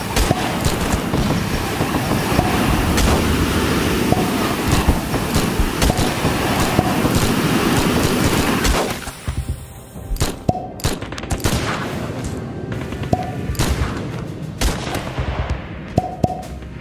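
Small impacts and pops crackle repeatedly.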